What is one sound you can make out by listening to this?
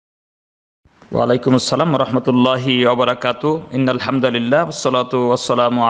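A man recites in a slow, melodic voice, close to a microphone.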